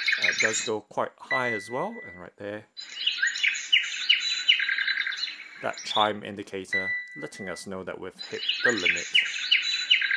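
A small speaker chimes with quick electronic tones as its buttons are pressed.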